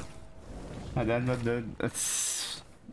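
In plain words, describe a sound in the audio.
A young man exclaims loudly into a close microphone.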